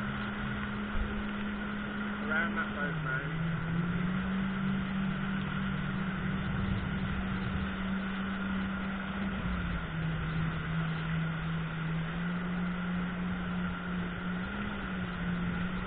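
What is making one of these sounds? A jet ski engine hums steadily, its pitch shifting as the throttle changes.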